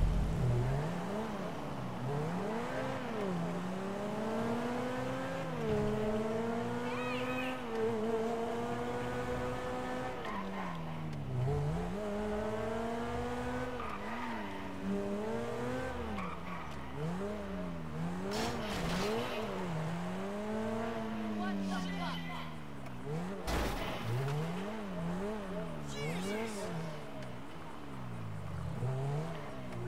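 A sports car engine revs up and down as the car speeds along.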